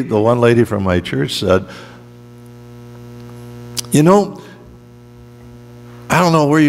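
A man speaks slowly through a microphone and loudspeakers in an echoing hall.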